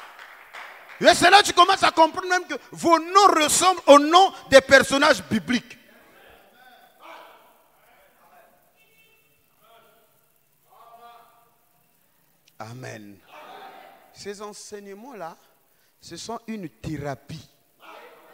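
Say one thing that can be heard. A man speaks loudly into a microphone, heard through loudspeakers in an echoing hall.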